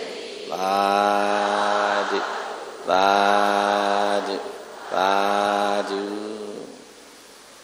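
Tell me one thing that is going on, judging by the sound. An elderly man chants in long, drawn-out tones through a microphone.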